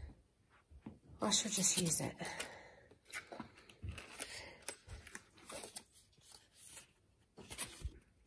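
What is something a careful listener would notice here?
Stiff cardboard rustles and taps as hands move it about.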